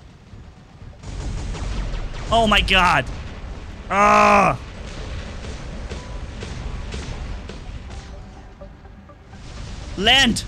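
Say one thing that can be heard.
Rockets fire and whoosh in rapid bursts.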